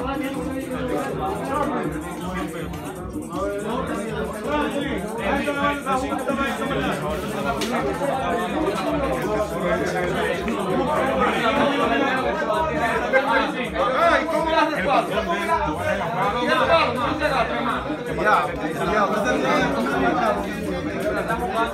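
A group of men talk and call out over one another nearby.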